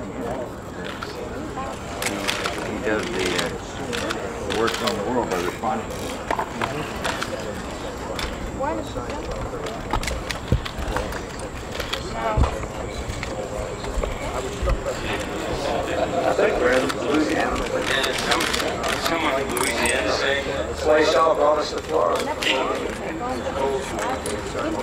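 A crowd of men and women murmurs and chats outdoors.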